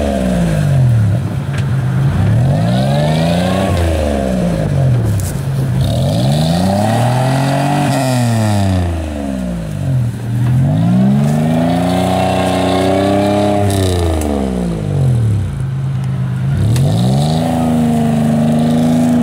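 Tyres churn through deep mud and water.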